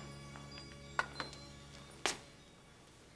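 A walking cane taps on a hard floor.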